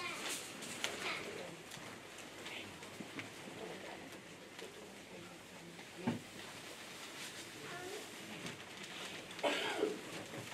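Bare feet pad softly on woven mats.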